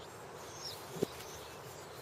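A ball lands with a soft thud on grass.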